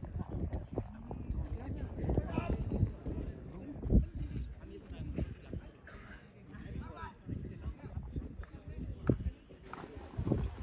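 Young men talk quietly outdoors.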